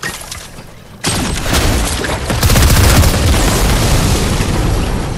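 An explosion booms loudly and crackles.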